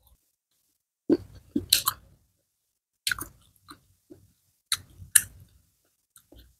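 Crisp fried fish crackles as it is torn apart by hand.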